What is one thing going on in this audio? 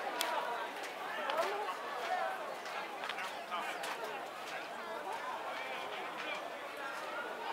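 Several men and women talk and chatter close by outdoors.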